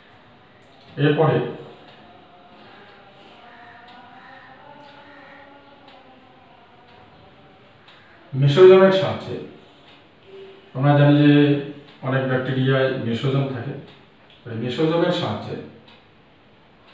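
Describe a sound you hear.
A middle-aged man speaks calmly in short bursts, close to a microphone.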